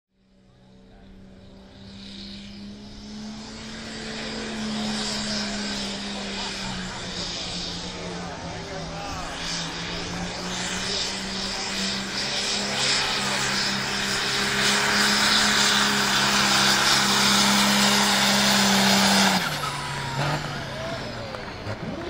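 A tractor engine roars loudly and steadily, growing louder as it comes closer.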